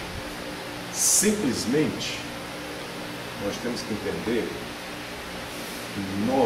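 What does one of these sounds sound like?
An elderly man speaks with emphasis, in short phrases.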